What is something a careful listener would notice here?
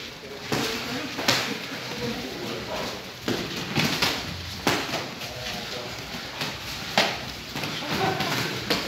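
Boxing gloves thud sharply against pads and bodies.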